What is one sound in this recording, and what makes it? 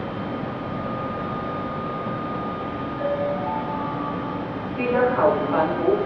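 An electric locomotive hums as it approaches.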